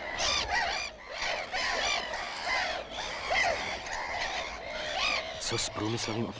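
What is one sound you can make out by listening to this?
Many gulls cry and squawk overhead.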